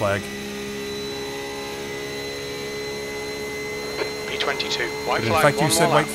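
A race car engine hums steadily at high revs.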